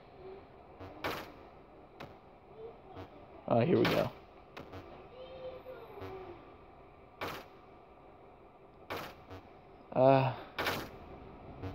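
Short electronic blips sound as a ball bounces off bricks and a paddle.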